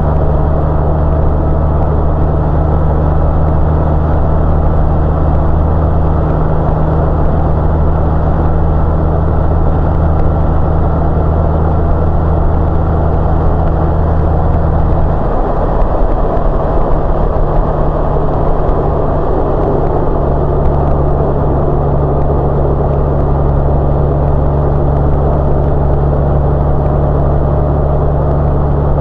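A motorcycle engine hums steadily up close, shifting note briefly as it changes gear.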